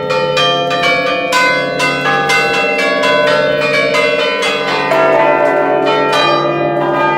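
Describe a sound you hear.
Large church bells ring loudly and rapidly close by, their tones overlapping and ringing on.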